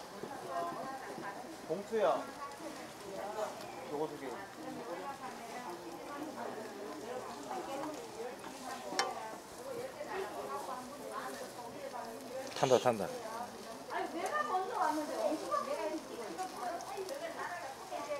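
Metal tongs clink against a frying pan.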